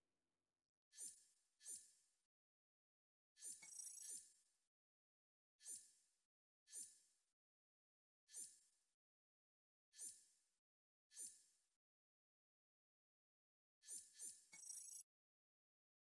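Short electronic menu blips sound again and again.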